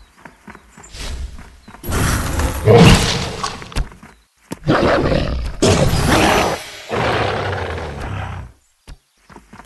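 Loud crashes and rumbling blasts burst out during a fight.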